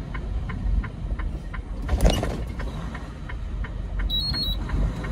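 Car tyres roll over pavement.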